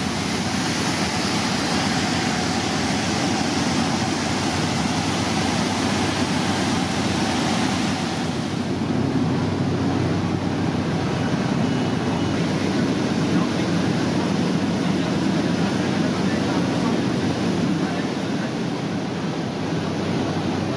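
Aircraft engines drone loudly and steadily inside a cabin.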